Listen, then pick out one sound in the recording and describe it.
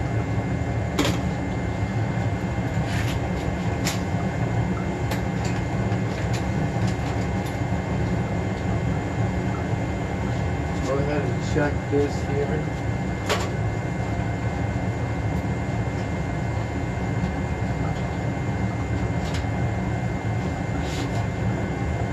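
Tools click and knock against metal.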